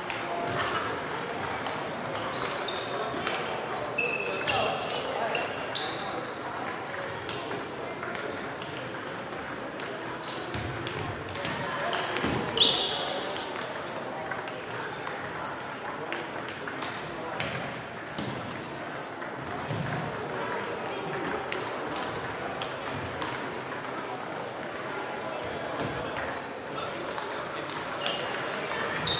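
A crowd of players and spectators murmurs in the background.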